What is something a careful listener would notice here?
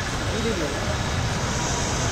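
A motorbike engine hums as it rides through the rain.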